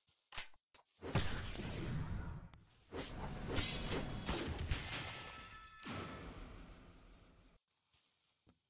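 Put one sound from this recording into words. A video game beam weapon blasts with a loud whooshing roar.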